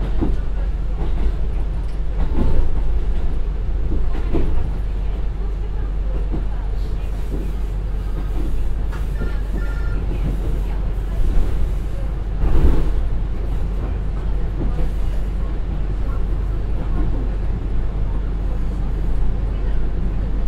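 Train wheels clack and rattle on the rails.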